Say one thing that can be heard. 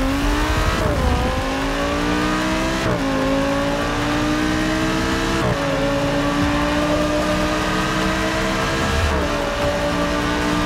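A racing car engine roars as it accelerates, its pitch climbing and dropping briefly with each gear change.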